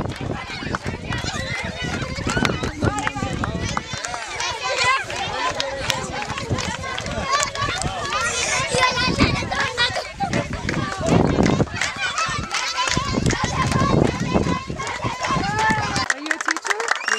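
Children chatter and shout outdoors.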